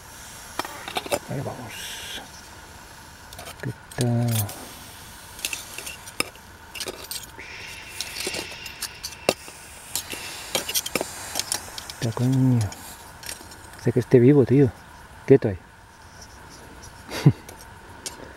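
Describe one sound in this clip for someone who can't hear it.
A knife blade clicks and scrapes against small metal parts.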